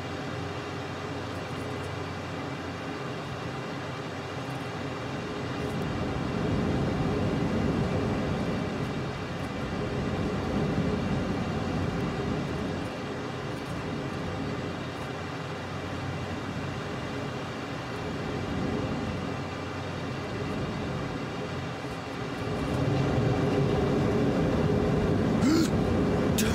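A jet engine roars steadily, swelling louder at times.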